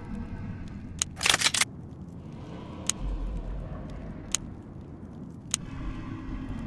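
Short game menu clicks sound as buttons are tapped.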